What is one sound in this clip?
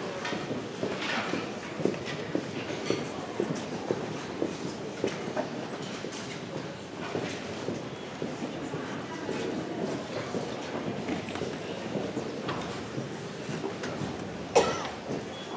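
A large crowd chatters in a big echoing hall.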